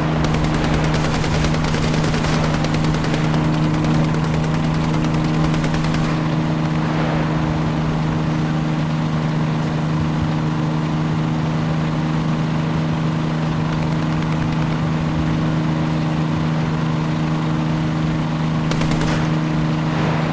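Tank tracks clatter over the ground.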